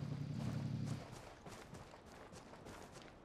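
Footsteps crunch on snow and gravel.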